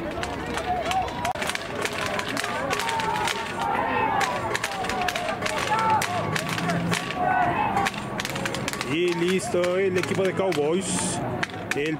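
Several young men shout and call out across an open outdoor field.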